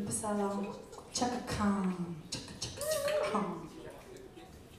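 A woman sings loudly through a microphone.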